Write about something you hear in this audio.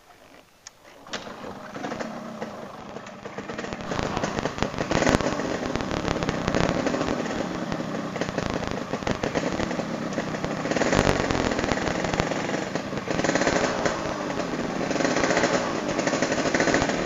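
A motorcycle engine starts and runs with a rough, rumbling idle.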